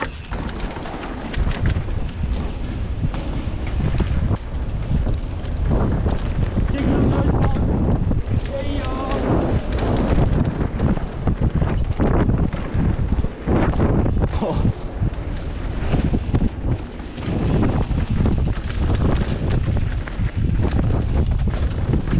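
Wind rushes past, loud and buffeting.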